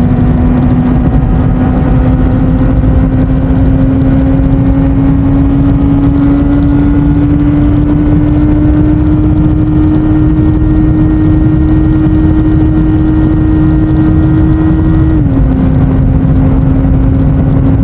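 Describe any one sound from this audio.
A motorcycle engine hums steadily, its pitch slowly rising, then dropping with a gear shift.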